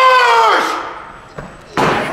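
A bowling ball thuds onto a wooden lane.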